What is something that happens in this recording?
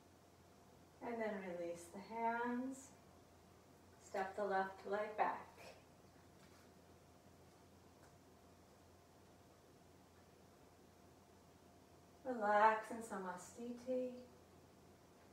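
A young woman speaks calmly and softly, pausing between phrases.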